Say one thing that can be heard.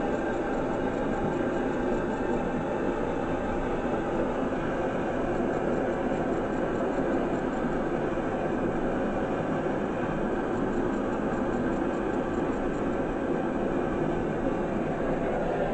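A gas torch roars steadily.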